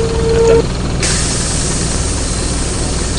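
Bus doors hiss open with a rush of air.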